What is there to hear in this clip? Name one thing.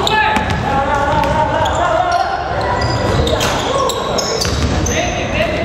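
Young players shout in a large echoing gym.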